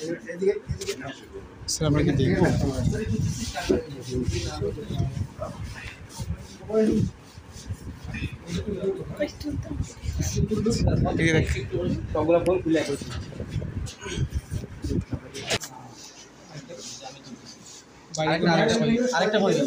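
A crowd of people talk over one another close by.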